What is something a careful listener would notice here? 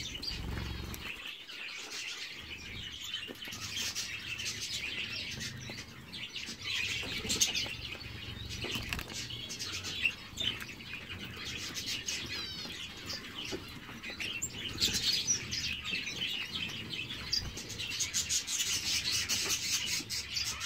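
Small finches chirp and twitter close by.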